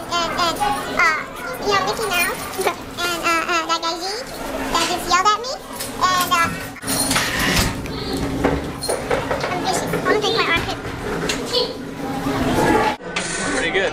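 Young women talk and laugh excitedly close by.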